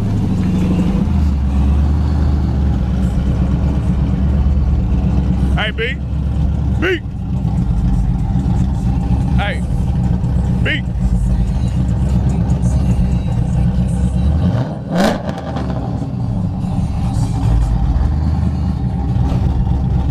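A car engine idles with a deep, loud rumble.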